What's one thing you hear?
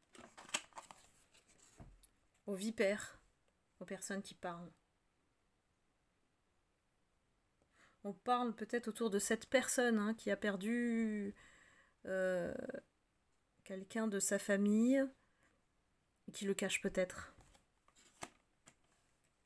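Paper cards rustle and tap on a hard surface.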